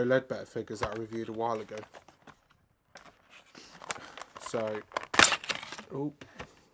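Cardboard flaps rustle and scrape as a box is opened by hand.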